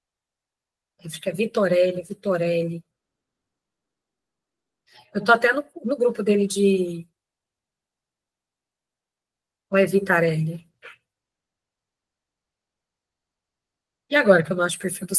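A woman speaks calmly in short phrases with pauses, heard through a microphone on an online call.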